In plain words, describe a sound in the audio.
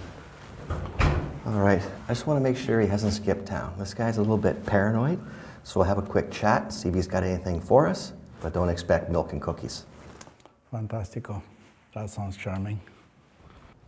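An older man speaks calmly, close by.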